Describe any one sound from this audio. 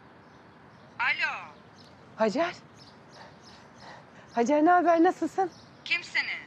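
A middle-aged woman talks cheerfully on a phone nearby.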